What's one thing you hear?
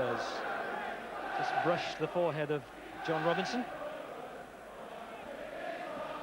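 A large crowd murmurs and cheers in a stadium.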